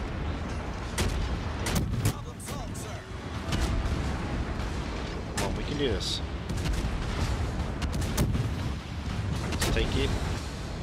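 Ship guns fire with loud booms.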